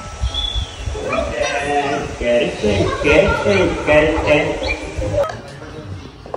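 A toddler babbles and coos nearby.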